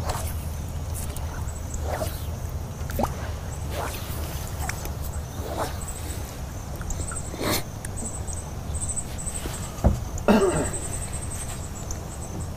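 A fishing reel whirs softly as line is wound in.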